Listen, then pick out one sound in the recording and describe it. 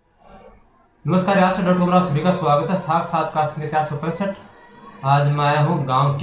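A young man speaks clearly and steadily to the listener, close by.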